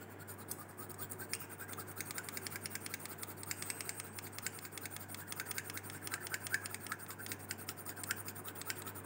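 A metal spatula scrapes and taps inside a glass test tube.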